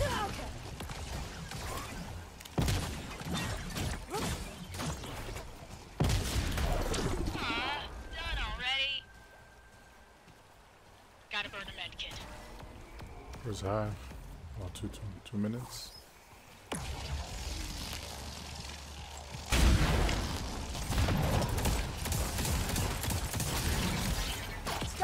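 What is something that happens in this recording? Gunfire and explosions boom from a game.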